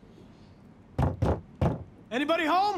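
Knuckles knock hard on a wooden door several times.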